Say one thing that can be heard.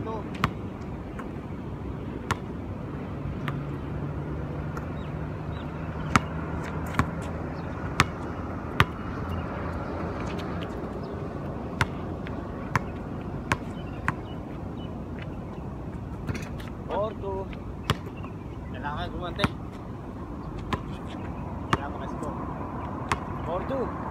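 A basketball bounces sharply on an outdoor court.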